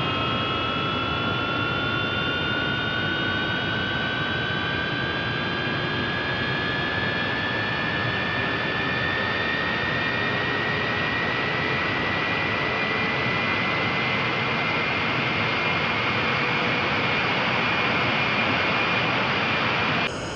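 A jet engine whines, slowly rising in pitch as it spools up.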